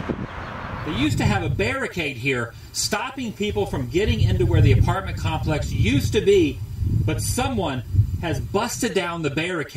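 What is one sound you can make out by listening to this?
A man talks with animation into a handheld microphone outdoors.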